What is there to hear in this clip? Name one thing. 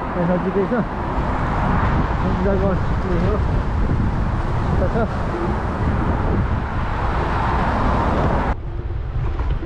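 Wind rushes loudly past the microphone outdoors.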